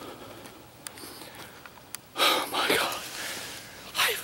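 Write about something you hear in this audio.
A middle-aged man talks in a hushed, excited voice close to the microphone.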